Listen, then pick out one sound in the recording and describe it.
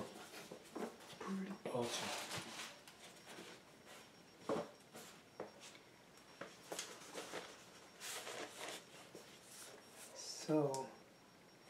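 Cardboard boxes bump and scrape on a table.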